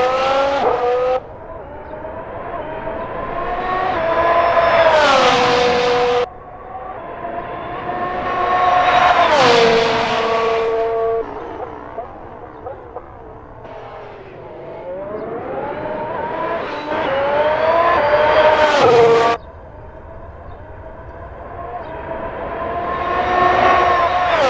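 A Formula One car's hybrid V6 engine screams as it accelerates through the gears and brakes with downshifts, passing by.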